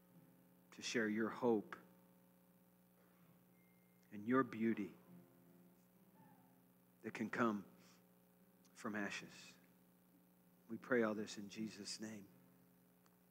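A man speaks calmly through a microphone in a large room, in short phrases with pauses.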